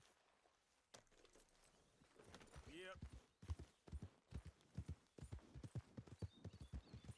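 Horse hooves thud along a dirt track at a trot.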